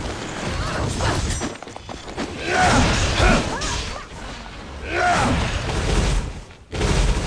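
Magic blasts whoosh and crackle in a fantasy battle.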